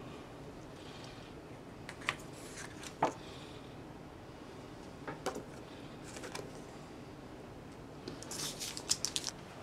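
Cards and paper rustle and tap as they are handled.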